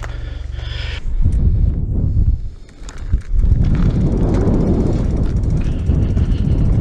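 Bicycle tyres crunch and rumble over a dirt trail.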